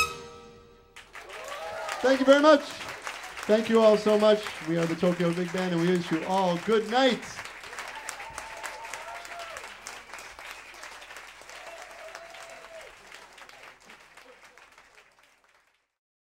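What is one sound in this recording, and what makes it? An audience applauds and cheers in a club.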